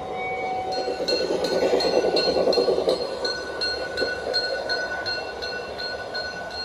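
A small model train rolls along its track, its wheels clicking in a quick, steady rhythm.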